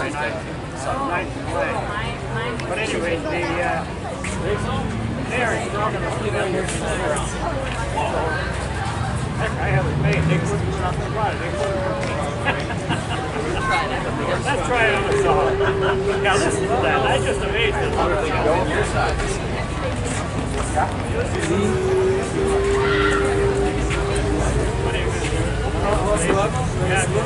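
A musical saw sings with long wavering notes.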